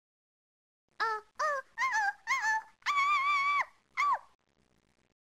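A cartoon electric guitar plays a short, bouncy run of notes.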